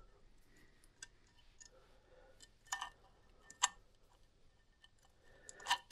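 Small metal engine parts click and clink as they are handled.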